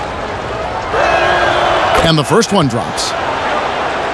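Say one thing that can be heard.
A crowd cheers loudly for a moment.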